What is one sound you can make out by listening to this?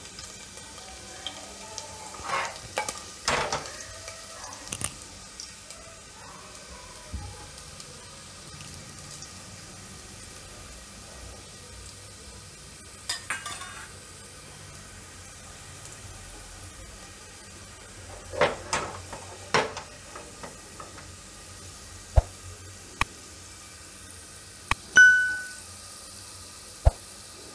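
Garlic sizzles gently in hot oil.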